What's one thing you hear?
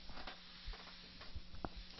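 An eraser wipes across a chalkboard.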